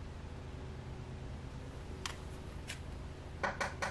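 A playing card taps and slides on a tabletop.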